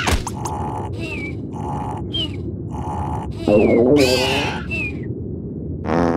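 A small cartoon creature snores in a steady, whistling rhythm.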